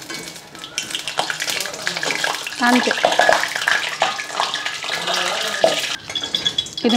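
Oil sizzles and bubbles as food fries.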